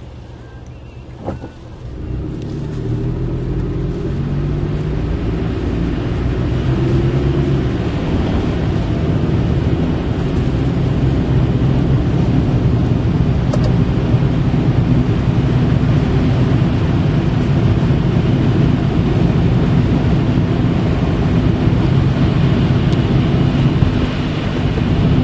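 A car engine hums steadily and grows louder as the car pulls away.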